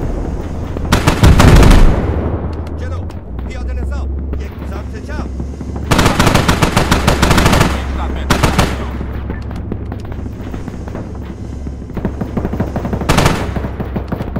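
A heavy cannon fires rapid bursts.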